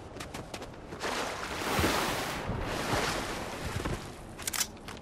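Water splashes as a game character wades through it.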